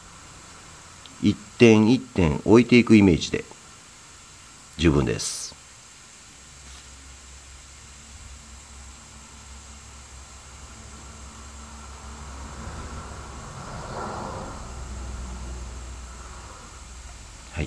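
An aerosol can sprays with a soft hiss.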